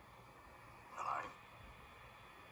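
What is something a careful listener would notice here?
A younger man asks a short question calmly through a television speaker.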